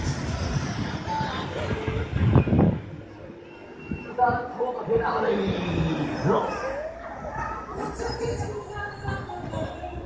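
A fairground ride's arm whooshes and rumbles as it swings through the air.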